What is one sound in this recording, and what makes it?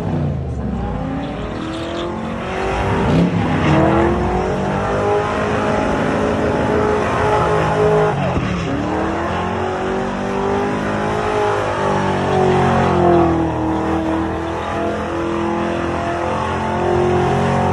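A car engine revs hard and loud, rising and falling.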